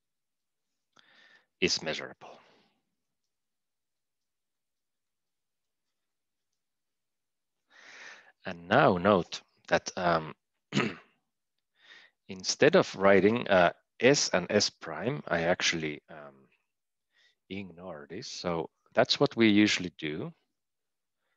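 A man speaks calmly into a close microphone, explaining in pauses.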